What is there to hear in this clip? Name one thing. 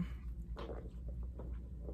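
A woman sips a drink through a straw.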